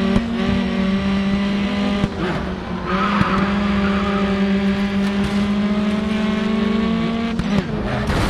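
A racing car engine roars at high revs, dropping briefly as gears shift.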